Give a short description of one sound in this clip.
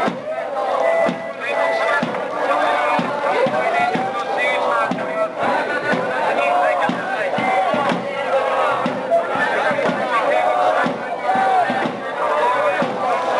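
A crowd of men and women shouts and chants loudly outdoors.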